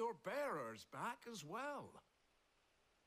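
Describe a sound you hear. An older man speaks warmly.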